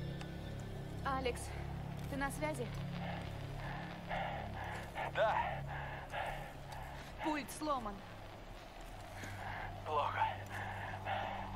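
A young woman speaks anxiously into a walkie-talkie, close by.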